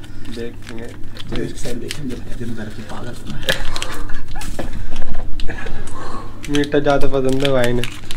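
A paper sachet rustles and tears.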